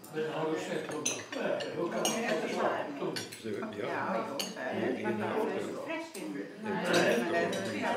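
Several elderly men and women chat around a table.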